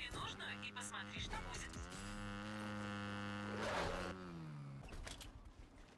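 A motorbike engine drones loudly, then winds down and stops.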